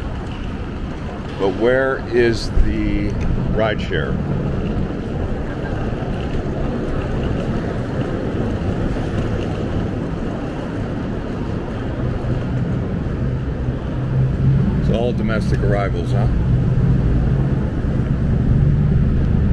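A low hum of traffic and engines echoes steadily.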